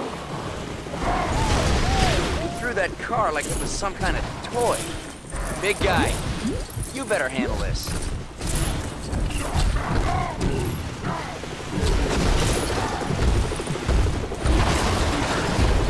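Debris crashes and clatters as objects break apart.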